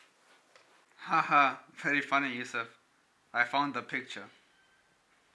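A young man speaks calmly, close by.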